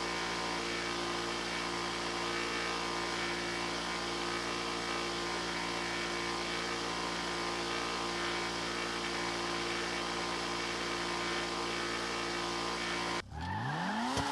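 A car engine drones steadily at high speed.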